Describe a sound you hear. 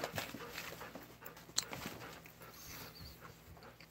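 A plastic bag crinkles as it is handled.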